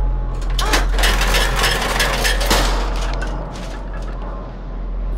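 Footsteps clatter on metal ladder rungs.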